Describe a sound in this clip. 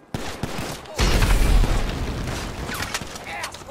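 A rocket explosion booms and rumbles.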